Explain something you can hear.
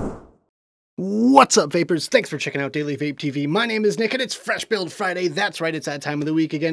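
A bearded man speaks with animation, close to a microphone.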